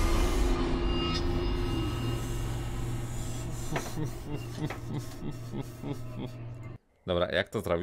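Eerie low game music drones and fades away.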